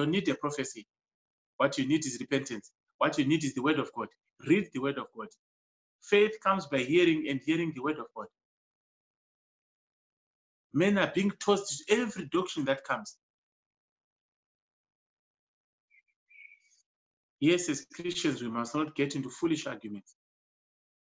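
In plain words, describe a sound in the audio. A middle-aged man speaks calmly in pauses, heard through an online call.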